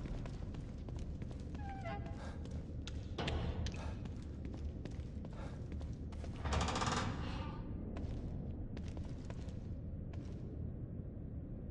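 Footsteps walk at a steady pace across a hard floor.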